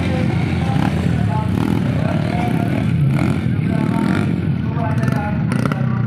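A four-stroke trail motorcycle rides slowly.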